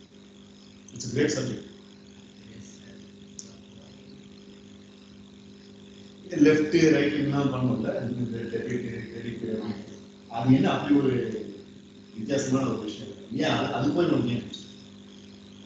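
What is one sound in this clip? A man speaks with animation in a room with some echo, heard through an online call.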